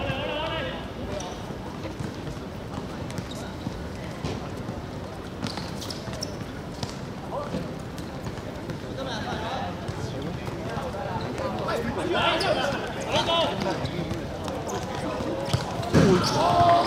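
Young men shout to each other across an outdoor court.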